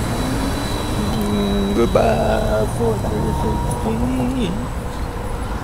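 An elderly man talks close by.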